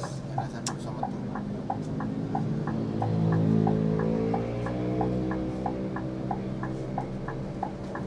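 A bus engine rumbles steadily from inside the bus as it rolls slowly forward.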